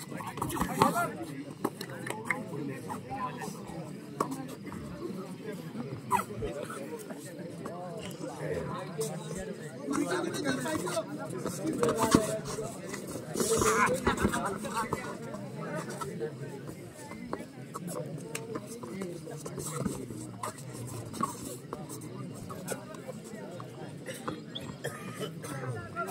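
Bare feet and shoes thud and scuff on a foam mat.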